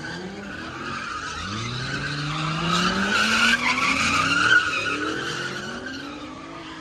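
Tyres screech on the road surface.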